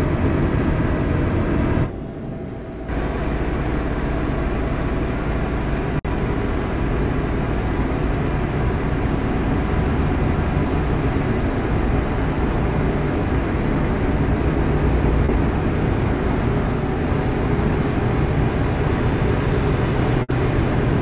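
Tyres roll over the road with a steady rumble.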